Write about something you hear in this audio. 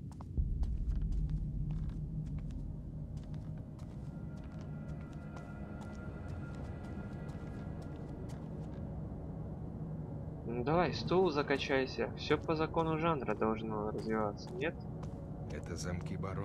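Slow footsteps shuffle on a stone floor.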